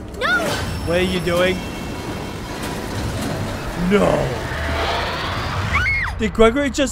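A metal lift rumbles and drops with a heavy crash.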